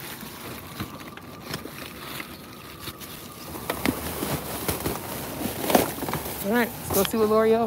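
Plastic bags rustle and crinkle close by.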